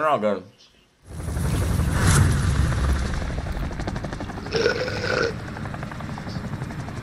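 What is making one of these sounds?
Helicopter rotors thump and roar steadily overhead.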